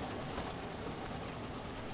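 A car engine hums as the car drives slowly along a road.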